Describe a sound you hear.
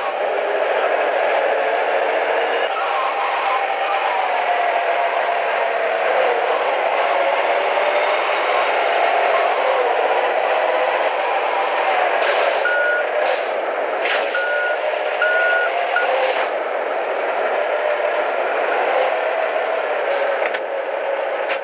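A truck engine drones steadily as it drives, rising and falling in pitch.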